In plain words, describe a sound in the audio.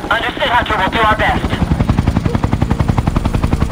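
A helicopter's rotor thumps close by.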